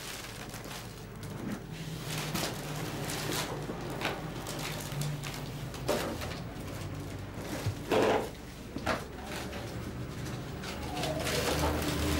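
Footsteps walk along a hard floor.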